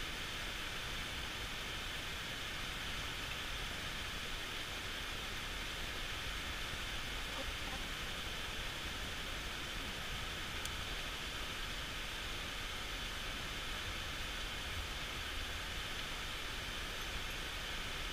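A river flows and gurgles steadily over stones nearby.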